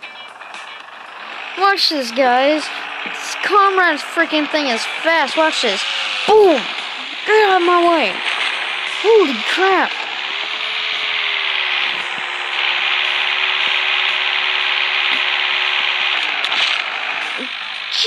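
A tractor engine roars steadily.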